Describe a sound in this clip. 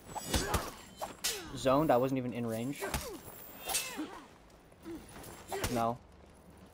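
Steel blades clash and ring sharply.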